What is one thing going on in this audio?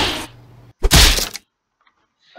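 A punch lands with a loud smack.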